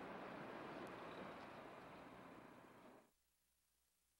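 Heavy trucks rumble past outdoors.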